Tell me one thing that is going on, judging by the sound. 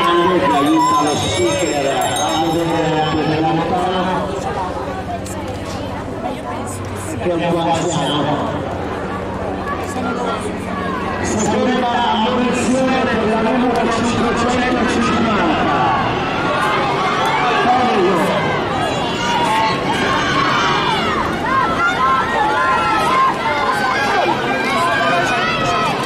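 A pack of inline skates roll and scrape on a smooth track.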